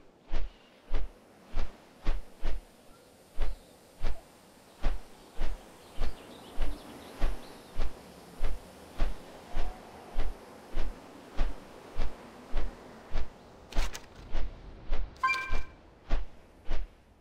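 Large wings flap in a steady, heavy rhythm.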